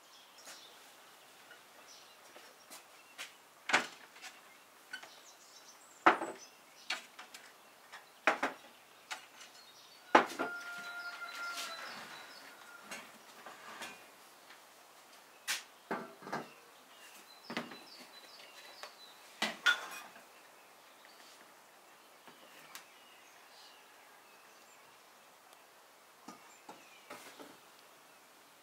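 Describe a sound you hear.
Dishes and bowls clink and knock on a wooden table.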